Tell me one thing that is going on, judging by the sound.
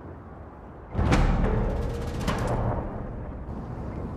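Wind roars in a strong sandstorm.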